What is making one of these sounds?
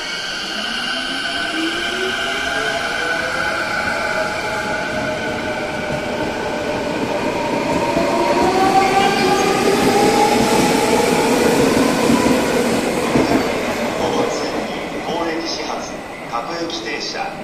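An electric commuter train rumbles along the tracks out of a station.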